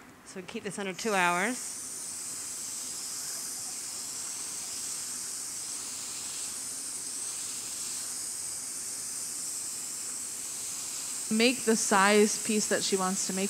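Hot glass hisses and sizzles against wet paper.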